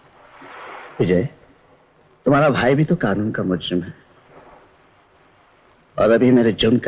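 A man speaks firmly and with emphasis, close by.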